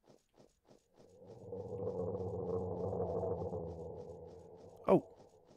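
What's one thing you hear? A creature growls loudly.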